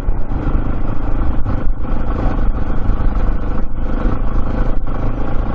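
A motorcycle engine rumbles steadily, riding close by.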